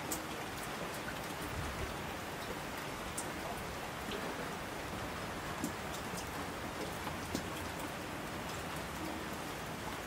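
Mountain streams rush and splash.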